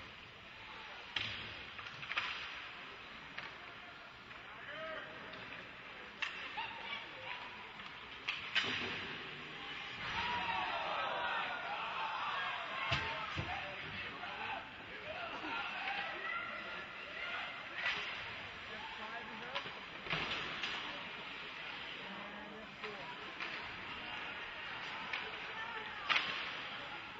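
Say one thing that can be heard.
Skates scrape across ice.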